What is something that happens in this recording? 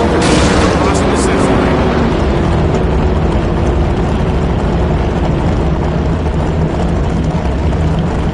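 A race car engine revs high, then drops to a loud rumbling idle.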